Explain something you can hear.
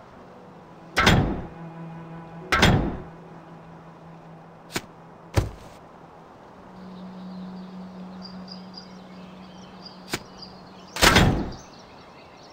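Short game sound effects clink and thud as items are moved.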